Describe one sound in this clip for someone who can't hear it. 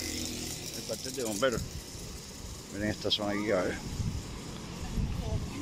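People chatter outdoors.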